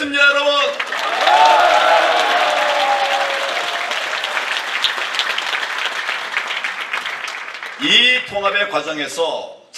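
A man speaks through a microphone and loudspeakers in a large echoing hall.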